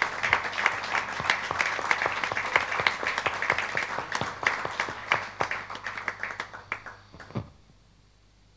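An audience applauds loudly in an echoing hall, then the applause dies away.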